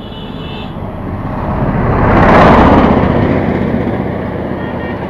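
Another motorcycle passes close by.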